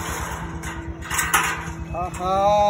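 Feet thud onto a metal platform.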